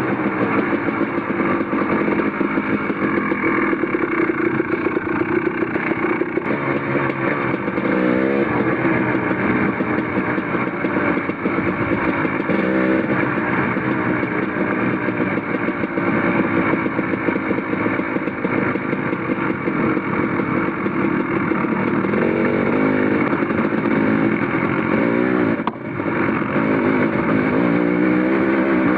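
Tyres crunch over gravel and rocks.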